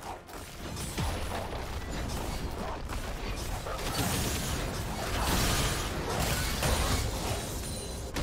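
Video game battle sound effects clash and burst.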